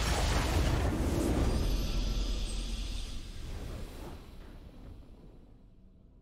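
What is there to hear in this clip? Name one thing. A short triumphant game fanfare plays and fades.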